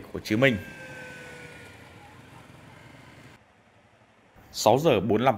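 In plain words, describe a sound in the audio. Motorcycle engines roar past close by.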